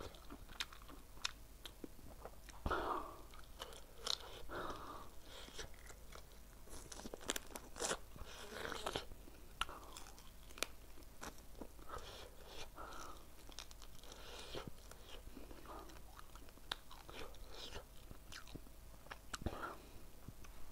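A man smacks his lips and slurps sauce from his fingers.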